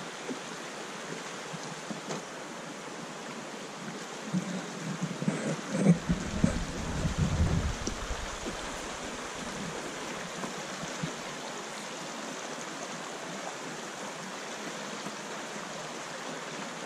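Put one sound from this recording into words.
A stream rushes steadily over rocks.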